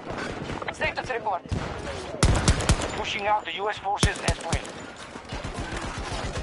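Pistol shots crack in a video game.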